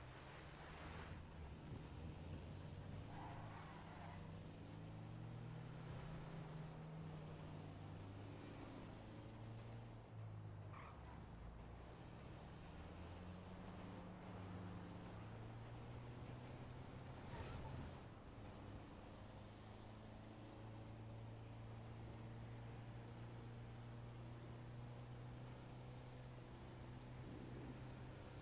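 A van engine hums steadily as it drives along a road.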